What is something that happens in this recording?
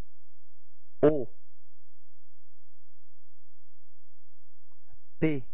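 A man reads out single letters through a microphone.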